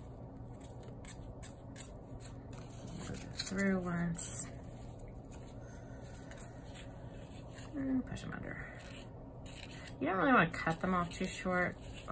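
Yarn rustles softly as it is pulled through stiff card.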